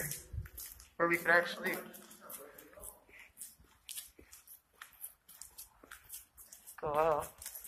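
Footsteps scuff and tap on a hard floor.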